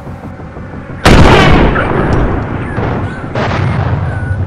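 A rifle shot cracks loudly and echoes away.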